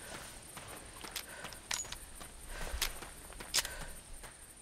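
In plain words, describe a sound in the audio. A revolver clicks as it is handled.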